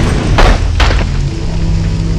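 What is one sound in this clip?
Flames crackle and roar.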